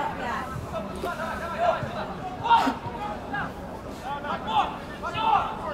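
Teenage boys shout to each other outdoors on an open pitch.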